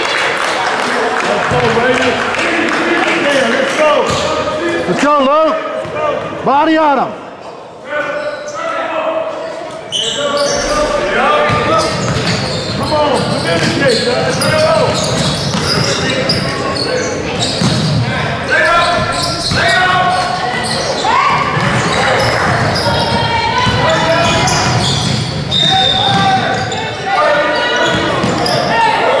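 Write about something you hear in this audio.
A crowd of spectators talks and shouts in a large echoing gym.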